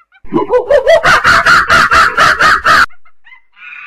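A chimpanzee screams loudly, its pitch rising in quick bursts.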